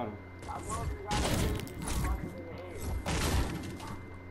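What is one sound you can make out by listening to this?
A pickaxe strikes metal with loud clanging blows.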